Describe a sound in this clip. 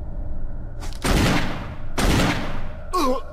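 A gun fires loud shots close by.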